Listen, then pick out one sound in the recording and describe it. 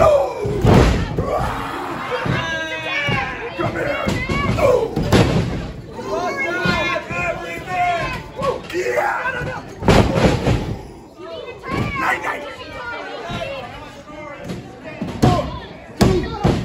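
Bodies slam hard onto a wrestling mat with loud thuds.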